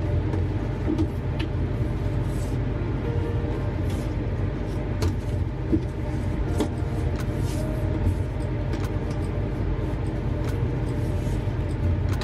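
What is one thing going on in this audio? A satin ribbon rustles softly as it is pulled and tied.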